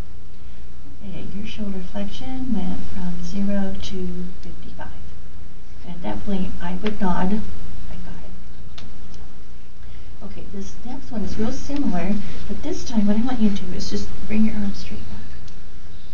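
An elderly woman speaks calmly and clearly into a headset microphone, close by.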